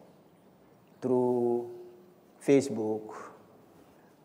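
A young man speaks haltingly through a microphone.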